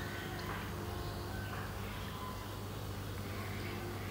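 Water drips and splashes into a pool of water.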